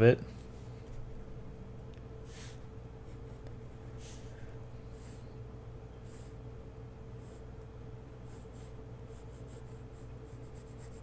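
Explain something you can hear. A pencil scratches lightly across paper in short strokes.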